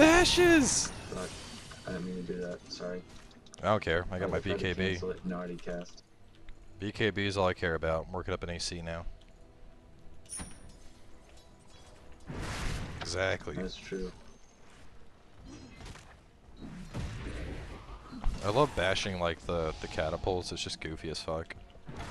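Magic blasts and weapon strikes clash in a game battle.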